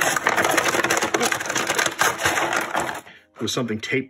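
Plastic packaging crinkles and rustles loudly close by.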